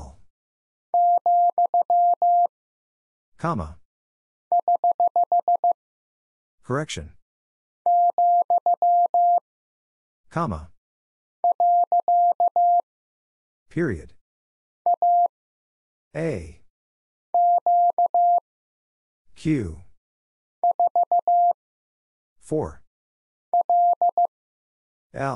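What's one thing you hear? A telegraph key sends steady, high Morse code beeps in short bursts.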